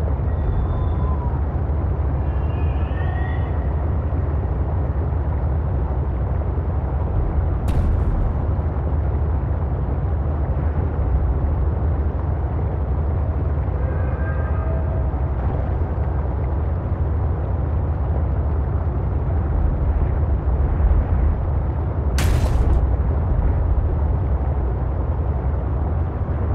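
A low, steady underwater rumble of rushing water goes on throughout.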